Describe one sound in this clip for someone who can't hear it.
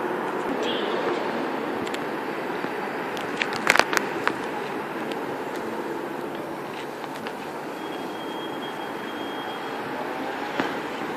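A diesel locomotive rumbles steadily as a train creeps slowly along the tracks.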